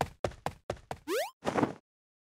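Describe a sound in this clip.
An electronic tone sweeps quickly upward.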